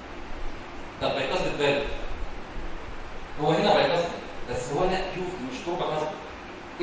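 A man speaks calmly through a microphone, lecturing in a large room.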